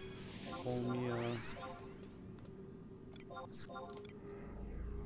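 Short electronic chimes beep a few times.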